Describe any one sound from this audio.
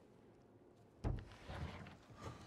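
A wooden chest lid thumps open.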